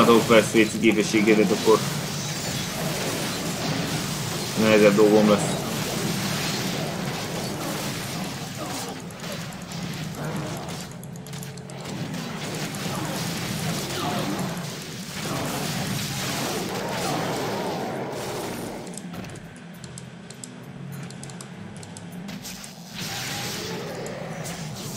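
Game battle sounds clash and crackle with spells and blows.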